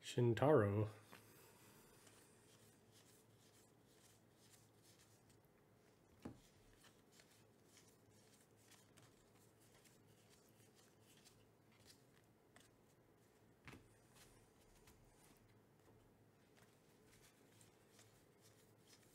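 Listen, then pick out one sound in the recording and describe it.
Trading cards softly shuffle and slide against each other in hands.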